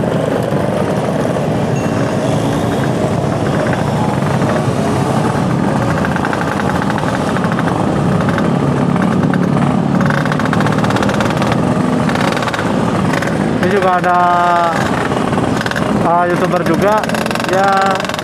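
Many motorcycle engines rumble and drone close by.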